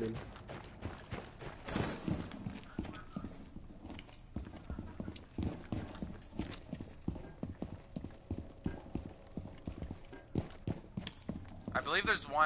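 Footsteps thud quickly on a hard floor indoors.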